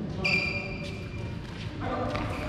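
Sports shoes squeak sharply on a court floor.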